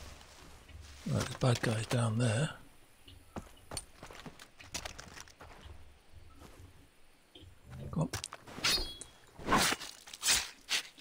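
An older man speaks with animation into a microphone.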